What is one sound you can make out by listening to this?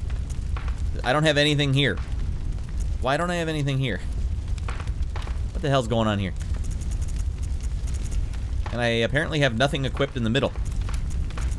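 A man talks animatedly and close into a microphone.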